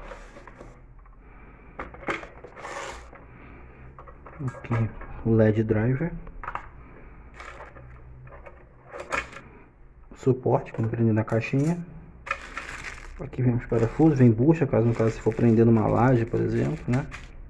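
Plastic parts click and rattle as they are handled close by.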